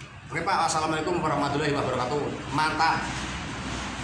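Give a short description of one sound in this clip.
A young man talks close by with animation.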